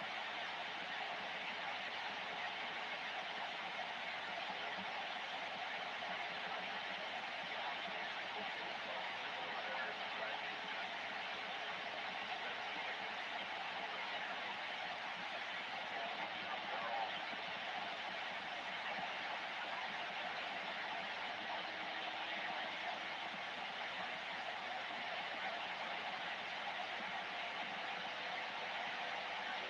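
Radio static hisses steadily from a receiver's loudspeaker.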